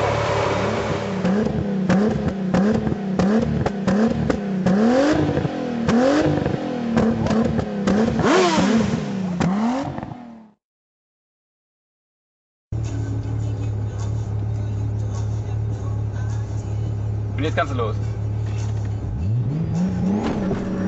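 A car engine revs sharply again and again, roaring through the exhaust.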